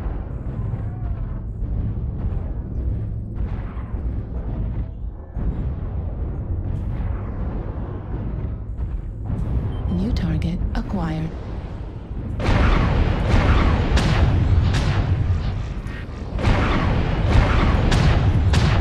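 A heavy machine rumbles and thuds steadily underfoot.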